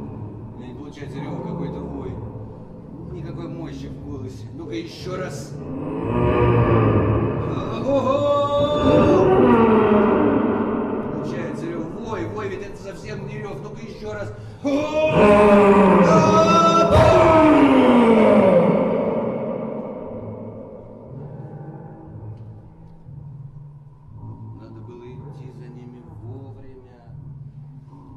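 A man speaks with strong emotion.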